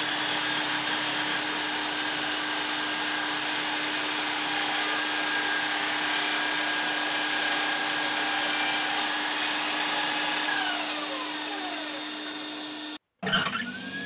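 A power saw motor whirs steadily, then slowly winds down.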